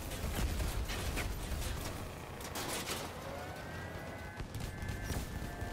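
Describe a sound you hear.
A heavy vehicle engine roars and rumbles.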